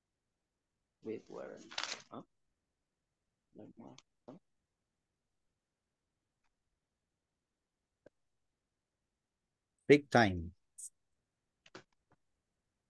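A man speaks in short bursts over an online call, with long silences between.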